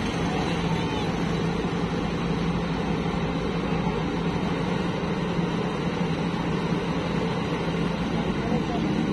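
A backhoe loader's diesel engine rumbles steadily close by.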